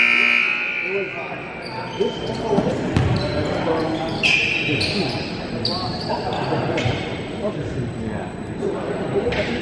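A crowd of spectators chatters in an echoing gym.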